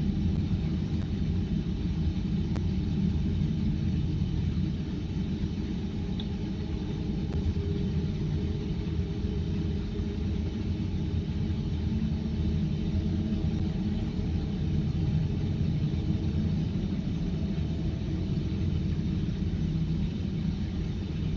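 Flames crackle and hiss steadily along a burning blade.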